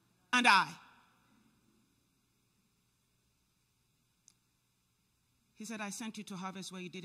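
A woman speaks with feeling through a microphone in a large echoing hall.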